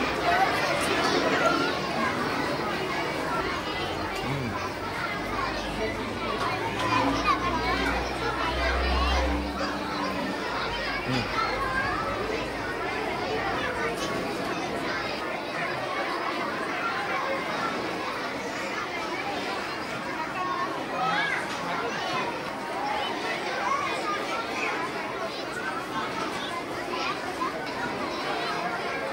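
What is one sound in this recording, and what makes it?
Many children chatter in a busy, echoing room.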